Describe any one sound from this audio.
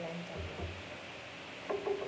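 A paintbrush dabs into a paint palette.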